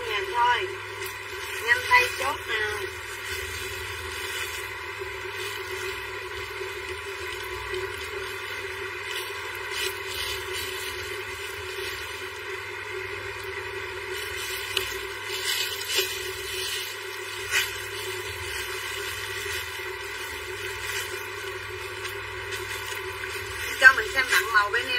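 A plastic bag crinkles and rustles up close.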